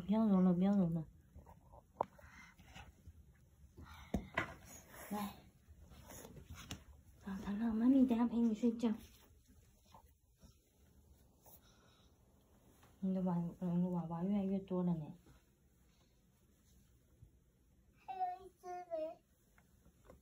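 A young child whines and cries close by.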